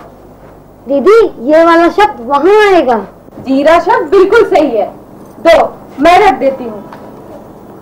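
A girl speaks clearly, close by.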